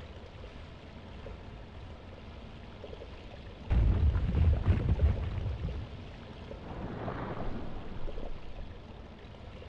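Water sloshes as a man wades through it.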